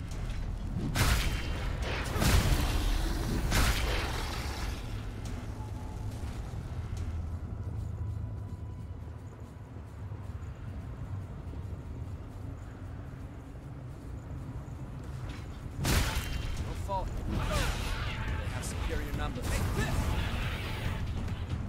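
A heavy weapon swings and strikes creatures with loud thuds and slashes.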